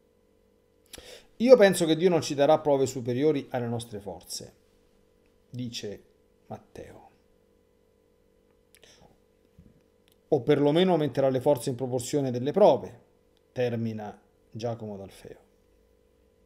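A middle-aged man speaks calmly and thoughtfully into a close microphone, with pauses.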